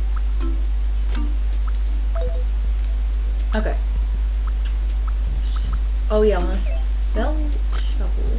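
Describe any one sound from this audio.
Short electronic menu blips and chirps sound as items are picked up and moved.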